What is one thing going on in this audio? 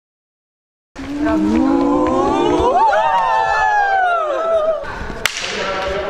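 Young women sing and cheer loudly in an echoing hall.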